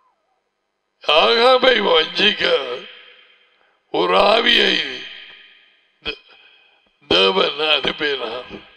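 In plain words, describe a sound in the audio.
An elderly man speaks emphatically into a close headset microphone.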